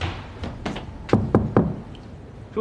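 A hand knocks on a door.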